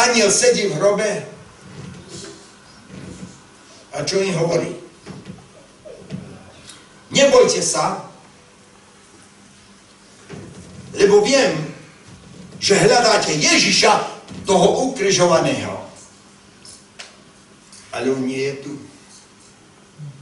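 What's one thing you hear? An elderly man speaks with animation through a microphone in an echoing hall, pausing often.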